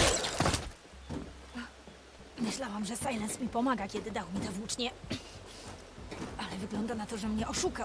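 Hands and boots clank on metal while climbing.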